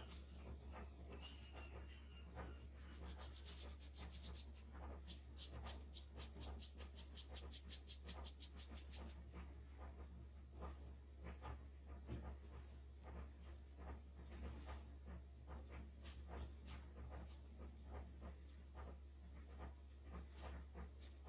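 A brush dabs and scrapes softly on paper.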